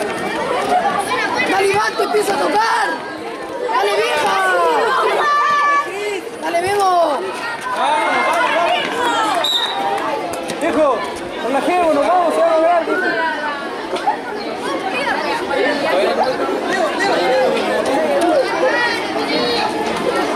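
Children shout and cheer loudly outdoors.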